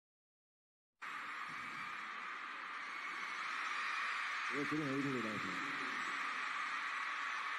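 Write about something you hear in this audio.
A crowd cheers in a large hall.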